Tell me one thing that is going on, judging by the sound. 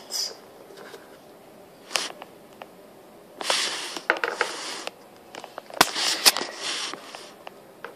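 A small plastic toy taps and scrapes on a hard stone surface.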